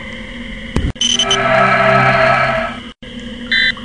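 An electronic scanner hums and chimes.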